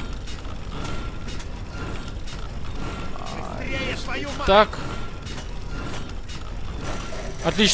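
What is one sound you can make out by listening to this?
Metal gears click into place.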